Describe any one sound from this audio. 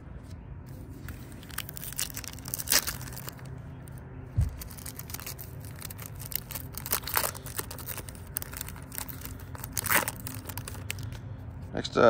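Foil wrappers crinkle and rustle as card packs are handled.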